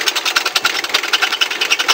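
Metal grinds against a spinning sanding disc.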